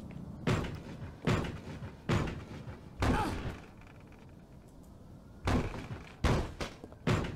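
A fist bangs heavily on a wooden door, echoing.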